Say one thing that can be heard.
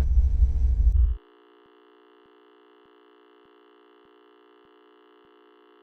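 A steady electronic test tone sounds.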